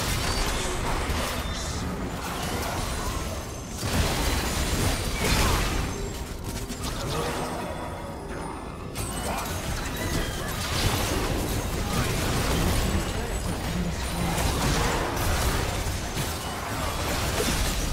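Game spells and attacks crackle and boom in a fast, busy fight.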